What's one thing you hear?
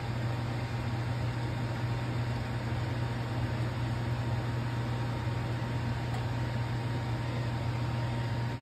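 Food sizzles and crackles steadily in a hot pan.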